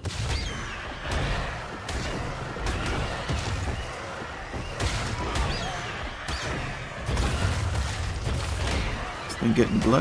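Large wings flap in heavy, rushing gusts.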